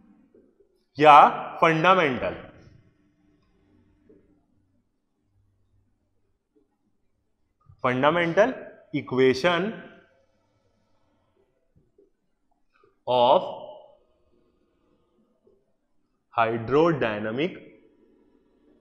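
A man speaks calmly in short phrases, close to a microphone.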